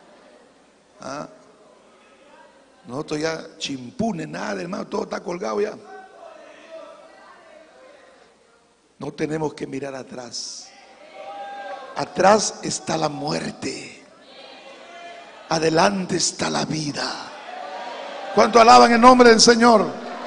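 A man speaks with animation through a microphone, heard over a loudspeaker in a large echoing hall.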